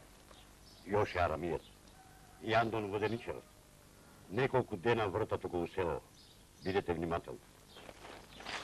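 A man speaks calmly up close.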